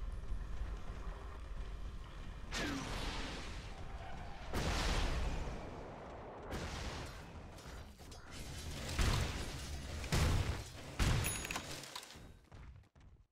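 Game spell effects whoosh and crackle.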